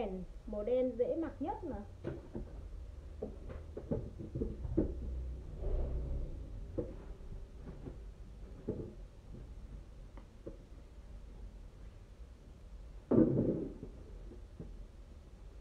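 Fabric rustles as clothes are pulled on and off.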